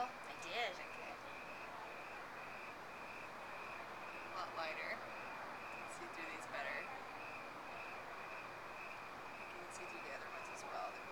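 Adult women talk briefly and quietly nearby, outdoors.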